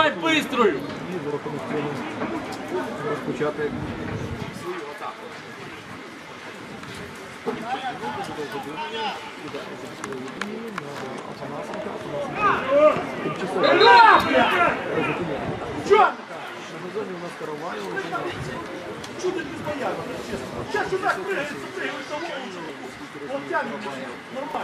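Men shout to each other outdoors across an open field.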